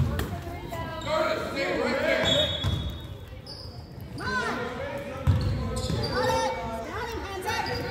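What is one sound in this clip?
Sneakers squeak on a wooden floor.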